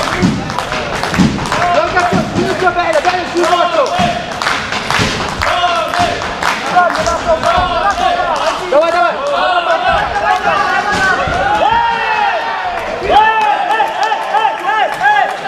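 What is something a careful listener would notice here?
A crowd of spectators shouts and cheers in a large echoing hall.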